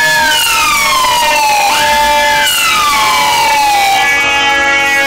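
A siren wails close by, sliding down in pitch as a van passes.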